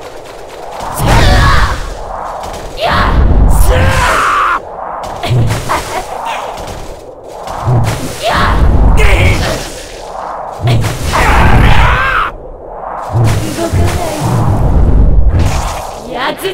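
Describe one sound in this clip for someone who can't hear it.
Swords clash and slash in bursts of fighting.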